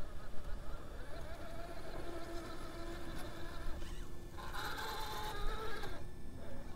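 A small electric motor whines.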